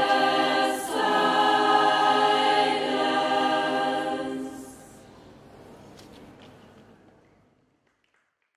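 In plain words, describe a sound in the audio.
A mixed choir sings together in an echoing hall, then the last chord fades away.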